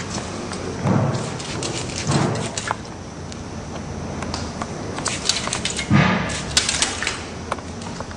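A spray bottle hisses as water is sprayed onto hair.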